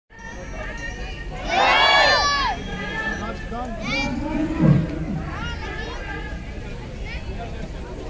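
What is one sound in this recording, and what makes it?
A crowd of men murmurs and talks nearby outdoors.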